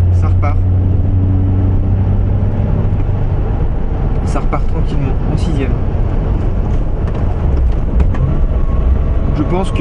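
Wind rushes loudly past an open car.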